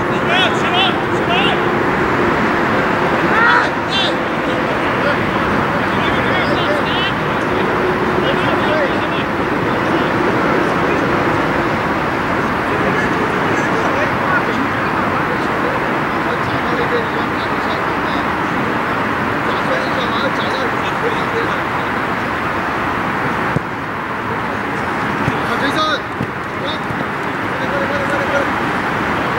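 Men shout to each other across an open field in the distance.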